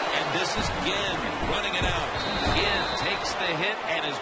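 Football players crash together in a tackle with heavy thuds.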